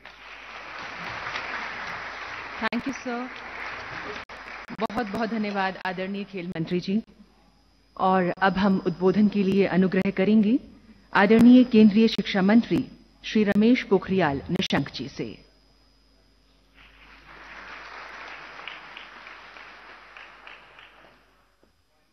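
An audience claps in a large hall.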